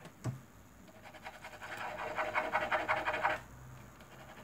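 Plastic markers rattle and click as a hand sorts through them.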